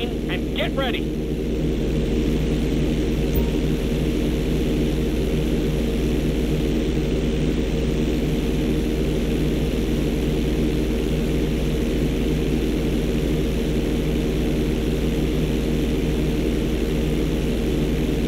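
Wind rushes past a plane.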